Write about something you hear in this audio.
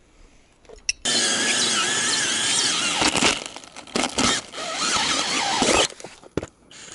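A power drill whirs loudly as a hole saw cuts into plastic.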